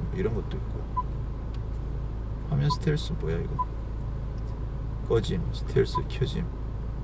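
A touchscreen gives short soft beeps as it is tapped.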